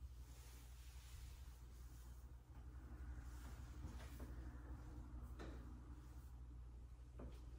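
Hands rustle through long hair.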